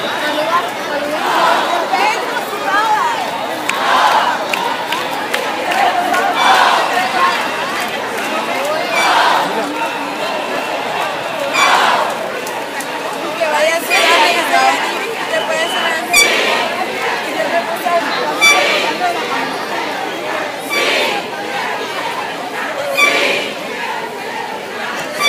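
A large crowd murmurs and talks outdoors.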